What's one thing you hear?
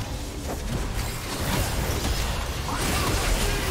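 Magic spells burst and crackle in a fight.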